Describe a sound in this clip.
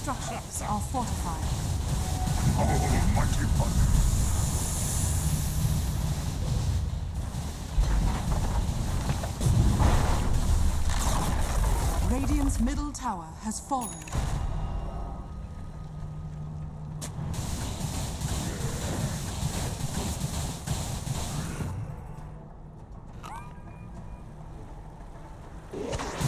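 Magical spell effects crackle and whoosh in a fast battle.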